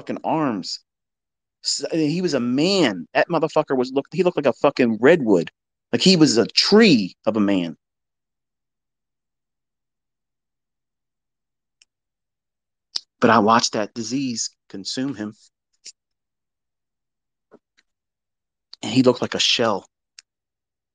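A man speaks close to a microphone, in short bursts with long pauses.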